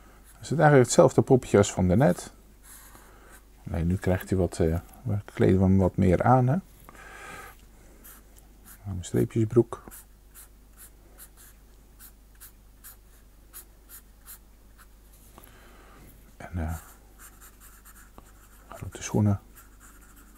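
A felt-tip pen squeaks and scratches across paper in short strokes.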